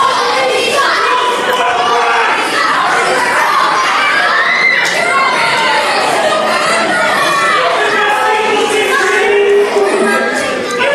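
A crowd of men and women chatters and shouts in a large echoing hall.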